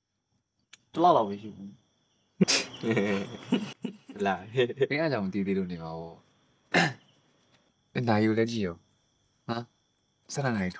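A second young man answers in a low voice.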